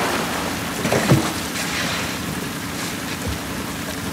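A person climbs into a small metal boat with a knock.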